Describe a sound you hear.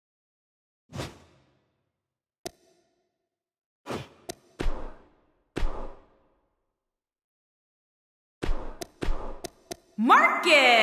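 Short electronic menu clicks sound one after another.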